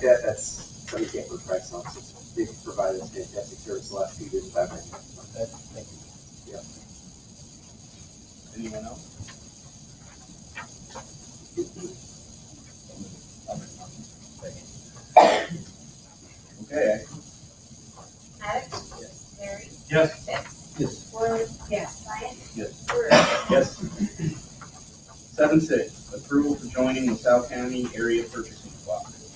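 A woman speaks to a meeting in a room with a slight echo, heard from a distance.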